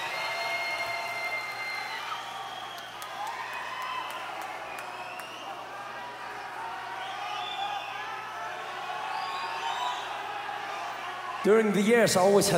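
A crowd cheers and whistles loudly in a large hall.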